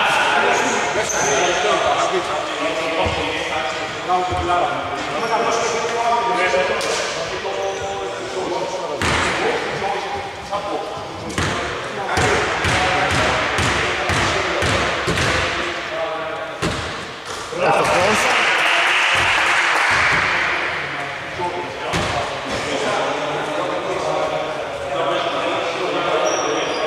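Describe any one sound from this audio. Men talk and call out across the court.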